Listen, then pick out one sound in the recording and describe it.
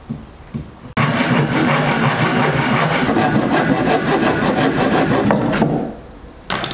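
A hand saw cuts through a wooden board.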